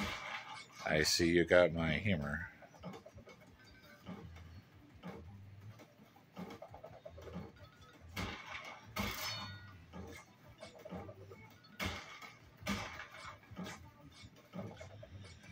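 A video game plays short chiming pickup sounds from a television.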